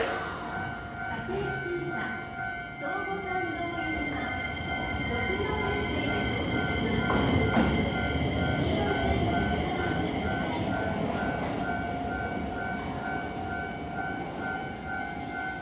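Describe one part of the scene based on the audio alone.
A stopped electric train hums steadily beside a platform.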